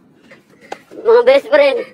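A young boy asks a question in a friendly voice.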